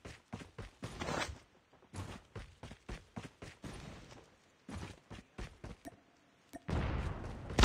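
Footsteps thud quickly across the ground.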